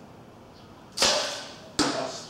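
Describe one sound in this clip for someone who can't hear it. A bowstring snaps sharply as an arrow is released.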